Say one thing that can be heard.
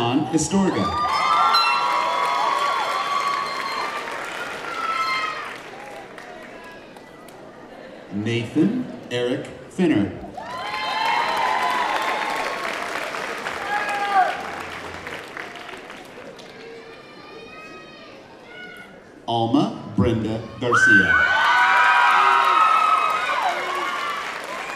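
People in the audience cheer and whoop.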